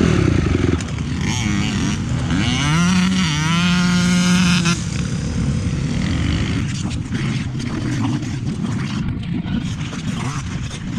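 A dirt bike engine idles and revs up close by.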